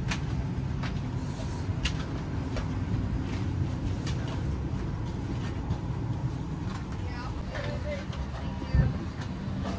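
A low steady hum of an aircraft cabin drones.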